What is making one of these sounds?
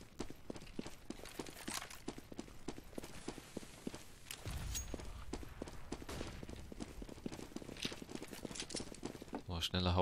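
Quick footsteps tap steadily on a hard floor.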